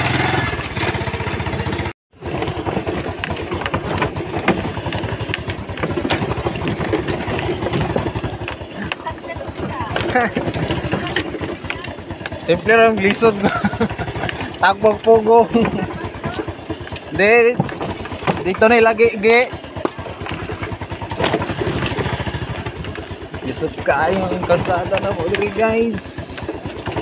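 A scooter rattles and bumps over a rough gravel track.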